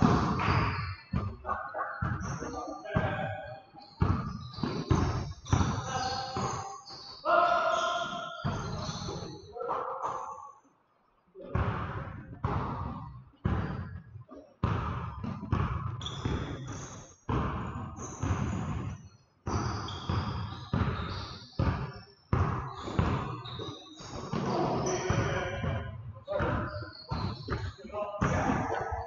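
A basketball bounces on a wooden floor in an echoing gym.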